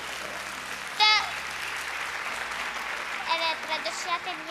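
A young boy speaks hesitantly into a microphone.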